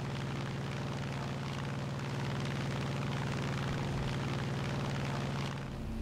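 Wind rushes past a diving plane.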